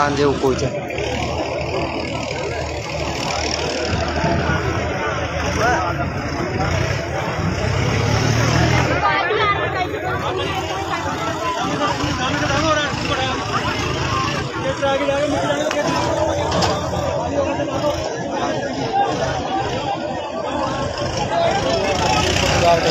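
A crowd of men talks and shouts excitedly close by, outdoors.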